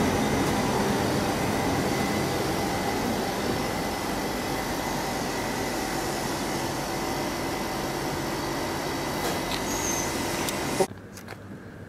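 A train rumbles and hums as it pulls out along the track.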